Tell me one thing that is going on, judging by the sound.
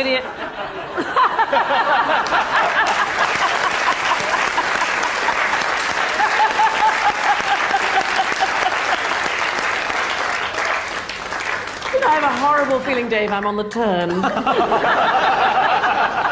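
An audience laughs and cheers in a large hall.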